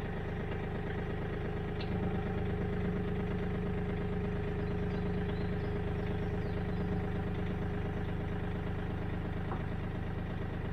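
A tractor engine runs steadily nearby with a low, even rumble.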